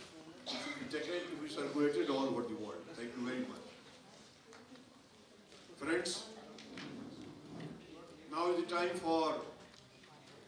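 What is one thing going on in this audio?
A man speaks through a microphone with animation, echoing in a large hall.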